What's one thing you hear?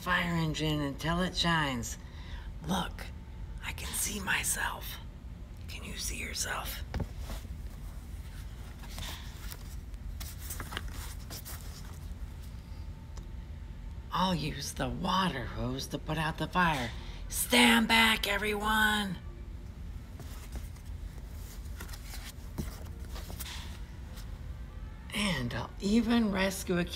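A man reads aloud close by, speaking with animation.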